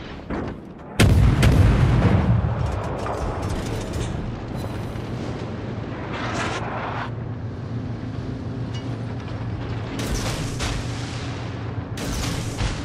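Heavy naval guns fire with loud, deep booms.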